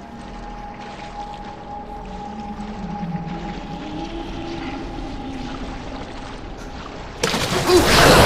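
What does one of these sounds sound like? Footsteps squelch through shallow water.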